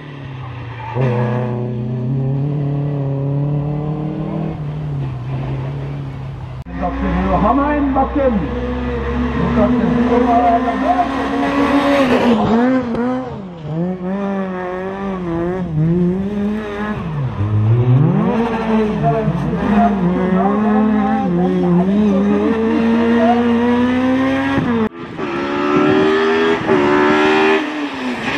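A rally car engine roars and revs hard as it races past.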